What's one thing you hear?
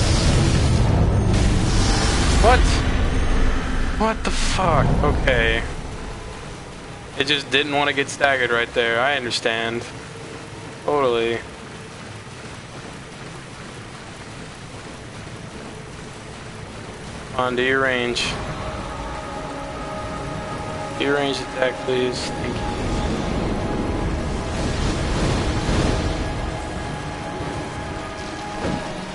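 A huge creature crashes heavily into the water.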